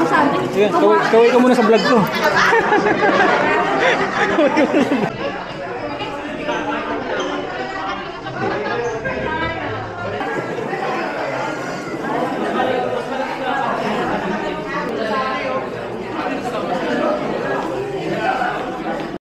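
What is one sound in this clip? Many people chatter in a large, echoing room.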